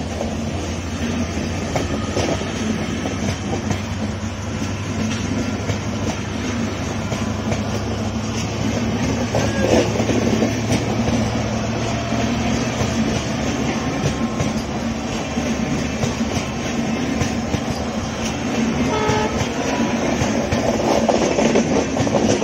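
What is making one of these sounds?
Train carriages rumble and clatter loudly along the rails close by.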